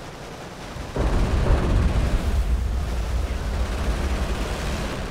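Artillery shells explode with deep, rumbling booms.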